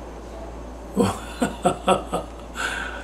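An elderly man chuckles softly.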